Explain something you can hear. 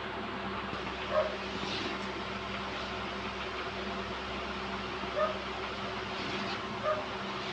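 Chalk scratches and taps on a board.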